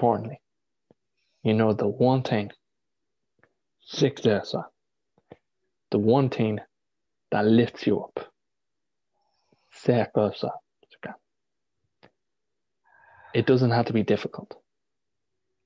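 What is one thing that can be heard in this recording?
A young man speaks with animation in short bursts through an online call.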